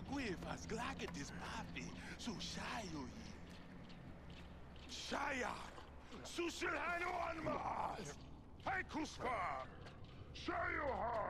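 A man speaks in a deep, theatrical voice.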